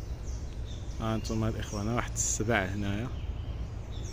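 A duck quacks nearby.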